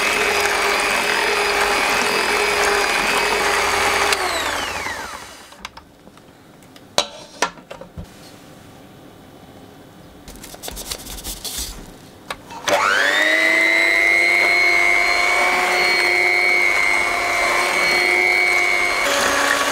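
An electric hand mixer whirs steadily, winds down, then starts up again and whirs to the end.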